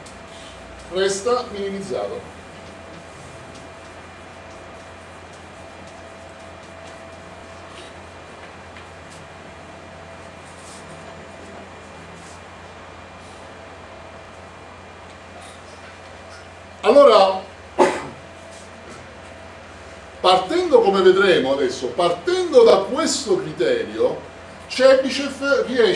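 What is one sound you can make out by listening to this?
A middle-aged man speaks calmly, lecturing in a slightly echoing room.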